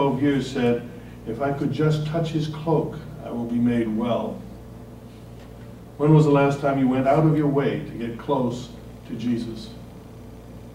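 A man speaks calmly into a microphone in a large room.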